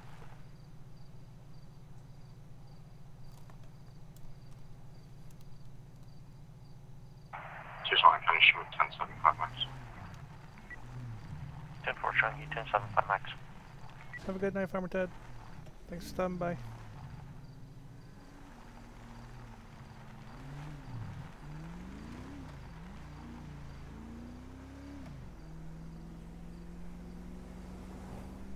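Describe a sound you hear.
A car engine idles, then revs and drives off.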